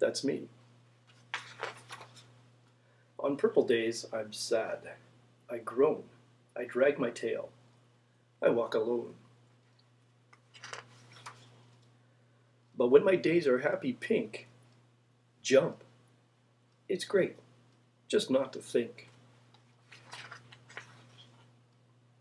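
Large book pages rustle as they turn.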